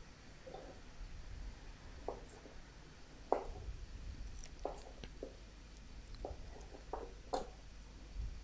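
A chef's knife slices through zucchini onto a wooden cutting board.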